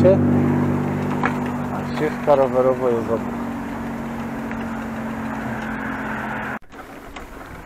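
An electric bicycle motor hums steadily.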